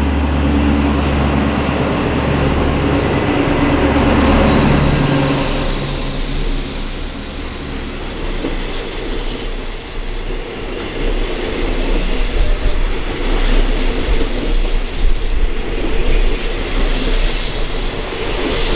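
Train wheels roll and clatter over the rails.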